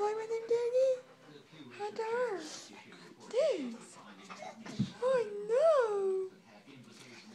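A dog whines in high, rising and falling cries.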